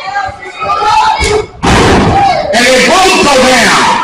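A body slams onto a wrestling ring mat with a loud thud.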